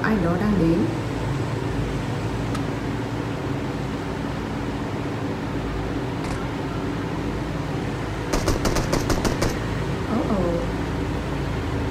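A young woman speaks quietly close to a microphone.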